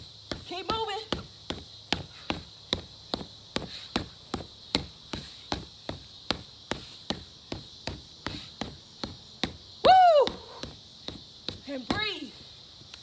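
Punches thud rapidly and steadily against a heavy punching bag.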